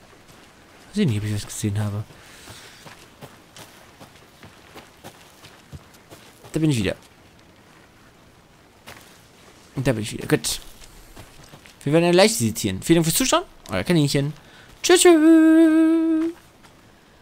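Footsteps rustle through undergrowth and leaves.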